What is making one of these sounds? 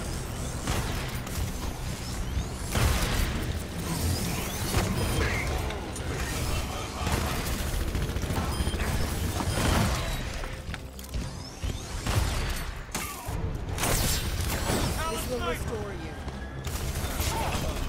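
Shotguns blast in rapid, loud bursts.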